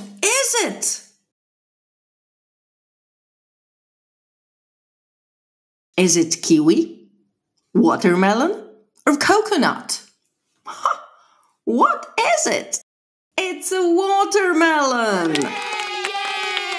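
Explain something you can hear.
A woman speaks with animation into a close microphone, pausing between words.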